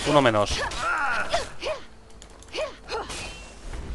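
A magic blast bursts with a rushing whoosh.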